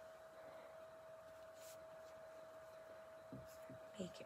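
Hands rustle a ribbon while tying a small bow.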